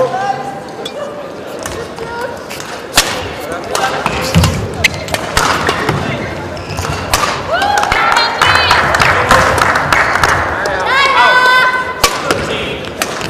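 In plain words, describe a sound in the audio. Badminton rackets strike a shuttlecock back and forth.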